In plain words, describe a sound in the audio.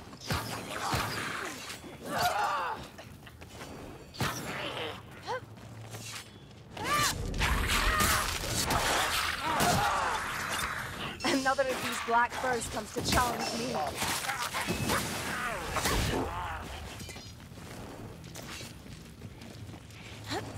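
Blades swish through the air in quick swings.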